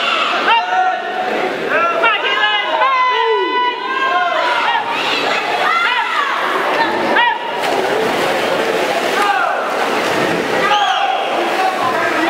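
A crowd of young women and men cheers and shouts loudly in an echoing hall.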